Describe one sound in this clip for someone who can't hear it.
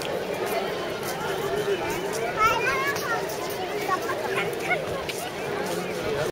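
Footsteps scuff on stone paving.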